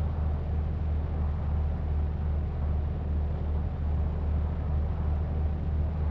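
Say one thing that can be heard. A bus engine hums low and steady as it drives along at speed.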